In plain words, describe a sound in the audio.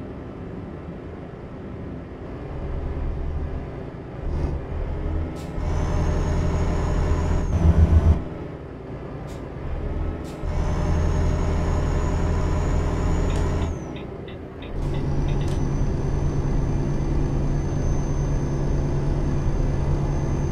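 A simulated diesel truck engine drones while cruising on a motorway.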